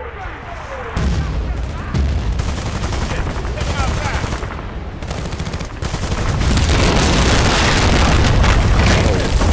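A machine gun fires rapid bursts.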